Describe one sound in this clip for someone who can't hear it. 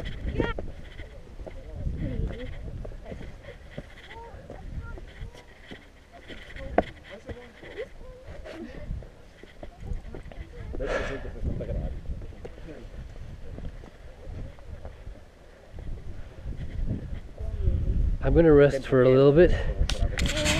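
Shoes scrape and scuff on rock.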